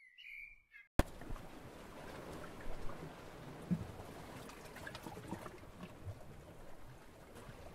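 Waves lap softly against a ship's hull.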